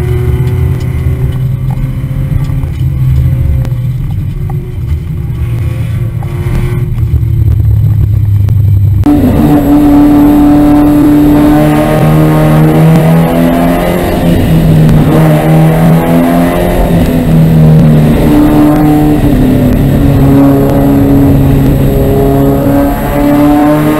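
A race car engine roars up close, revving up and down as it shifts gears.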